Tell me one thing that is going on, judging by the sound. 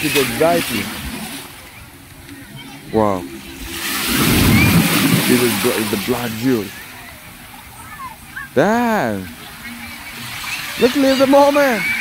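Small waves wash and splash onto the shore.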